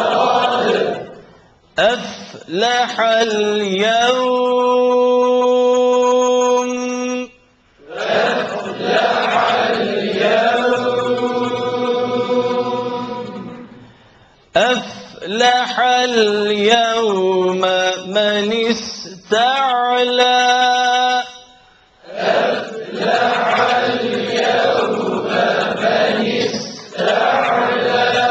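A man chants in a long, wavering melody through a microphone, in a room with some echo.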